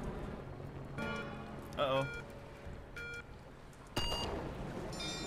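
Short electronic beeps count down, ending in a higher tone.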